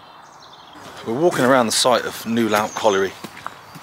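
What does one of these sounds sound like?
A man talks calmly, close up.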